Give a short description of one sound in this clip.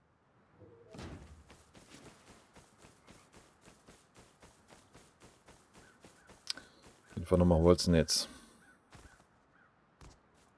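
Footsteps swish quickly through grass.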